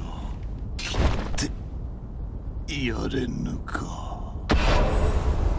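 A sword slashes with a sharp ringing swish.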